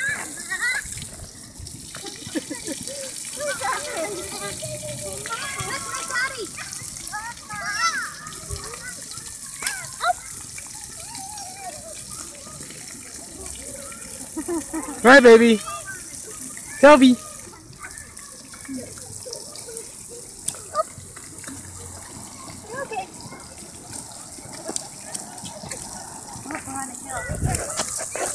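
Small fountain jets spray and patter on wet ground.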